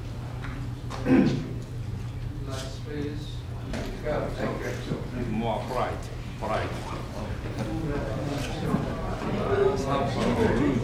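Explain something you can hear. A man talks calmly and in a friendly way, close by.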